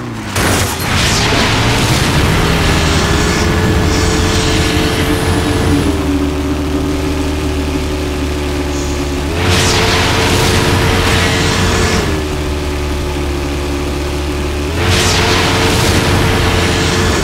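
Tyres kick up gravel and dust with a hissing rush.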